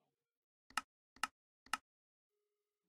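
Game menu buttons click sharply several times.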